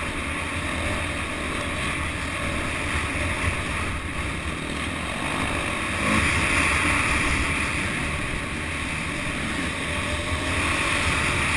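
A dirt bike engine roars loudly up close, revving hard.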